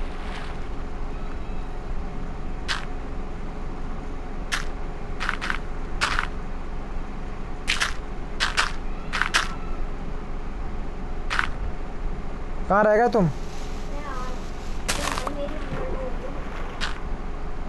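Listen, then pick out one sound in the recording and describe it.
Dirt blocks are placed with short, soft thuds, again and again.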